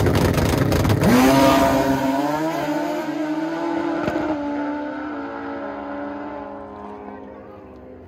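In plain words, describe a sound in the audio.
A motorcycle roars off at full throttle and fades into the distance.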